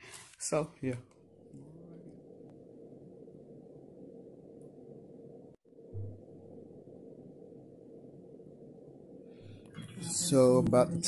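An ultrasound machine gives a low, steady whooshing.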